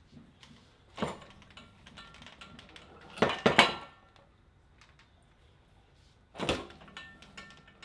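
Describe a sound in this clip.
A young man grunts and strains with effort.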